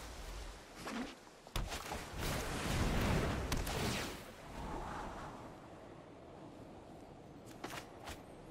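Digital game effects whoosh and chime as cards are played.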